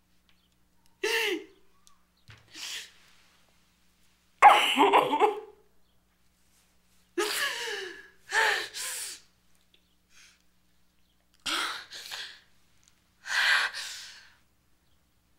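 A woman sobs and wails in bursts, close by.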